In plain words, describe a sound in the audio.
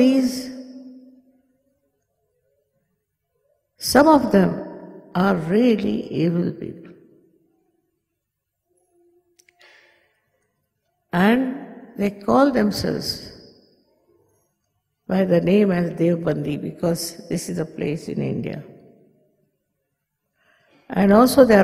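An elderly woman speaks slowly and calmly into a microphone, with long pauses.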